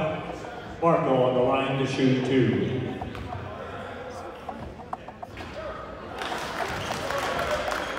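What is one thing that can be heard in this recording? A crowd chatters and cheers in an echoing gym.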